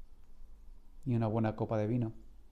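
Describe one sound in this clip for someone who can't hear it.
A middle-aged man speaks calmly and close to a microphone.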